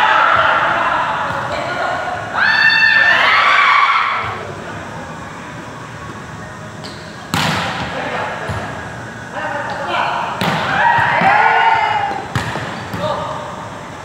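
Young men and women shout and call out to each other during play.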